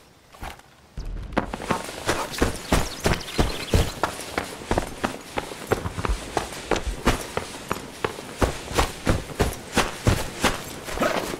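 Running footsteps thud quickly and steadily on hard ground.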